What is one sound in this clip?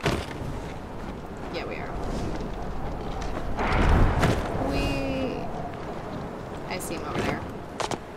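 A glider's wings flutter in the wind.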